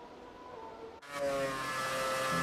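A racing car engine roars loudly up close.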